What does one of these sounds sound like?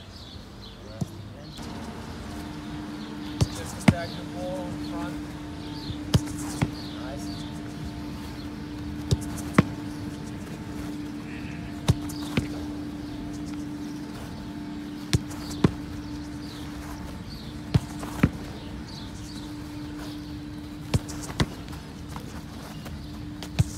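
A football is kicked hard, again and again, outdoors.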